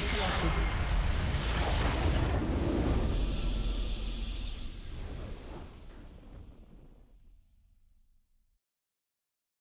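A game's victory fanfare swells and fades out.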